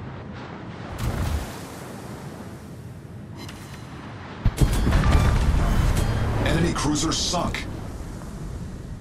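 Shells splash into the water near a ship.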